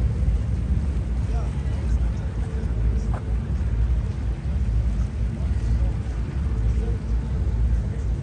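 Shallow fountain water splashes softly outdoors.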